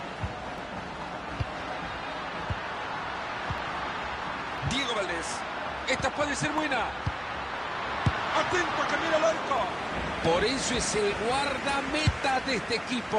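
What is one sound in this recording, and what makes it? A football is kicked with dull thumps, again and again.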